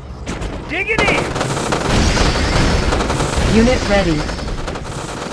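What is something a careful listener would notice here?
Explosions boom and crackle in a burst of battle noise.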